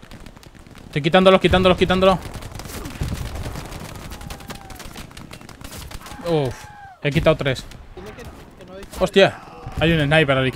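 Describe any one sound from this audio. A young man talks loudly and with animation into a close microphone.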